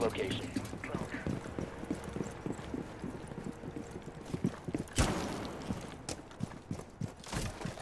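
Footsteps thud as a game character moves about.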